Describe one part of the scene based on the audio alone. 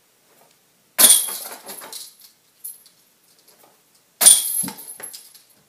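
A flying disc strikes a metal basket and its chains rattle and jingle.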